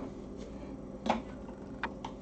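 A plastic lid clicks and clatters as hands handle a blender.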